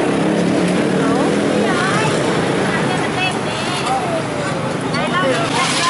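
Motorbike engines hum and pass by on a busy street.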